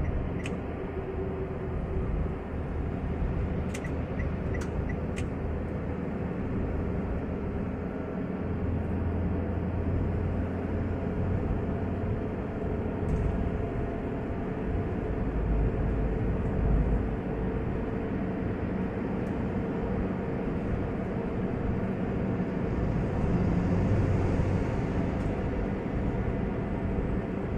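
Tyres roll steadily on the road surface.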